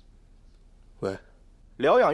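A young man speaks abruptly nearby.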